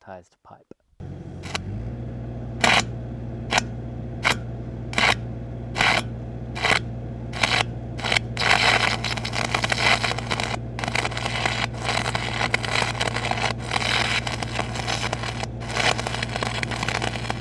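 A welding arc crackles and hisses steadily.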